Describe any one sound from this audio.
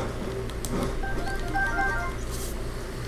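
A short bright chime rings as an item is picked up.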